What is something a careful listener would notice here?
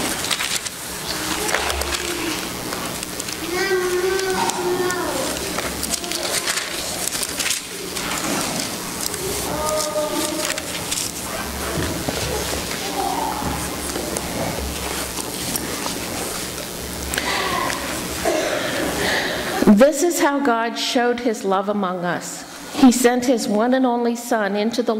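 A middle-aged woman sings into a microphone.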